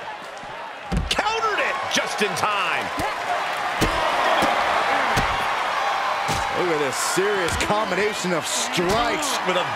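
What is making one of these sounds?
Bodies thud heavily against a wrestling ring.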